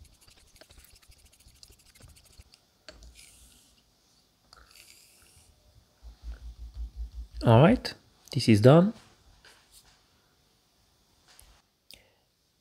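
A steel blade scrapes softly across a sharpening stone.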